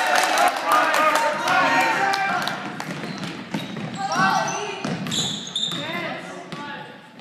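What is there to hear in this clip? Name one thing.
Spectators shout and cheer in an echoing hall.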